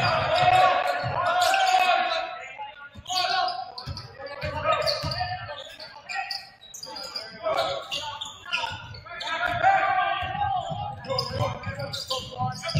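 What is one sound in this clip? A basketball thumps as it is dribbled on the court.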